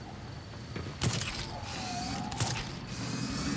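A grappling line fires with a sharp snap and zips taut.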